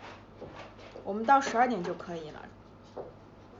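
A young woman speaks briefly and expressively close to a microphone.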